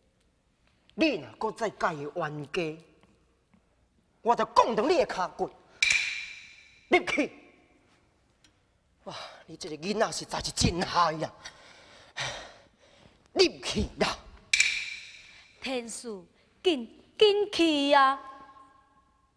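A man speaks and sings in a theatrical style.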